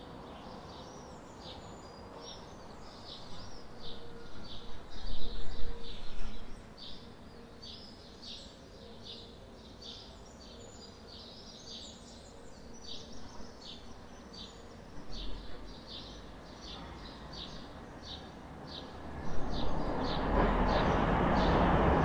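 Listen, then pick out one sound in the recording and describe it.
Small birds chirp repeatedly nearby.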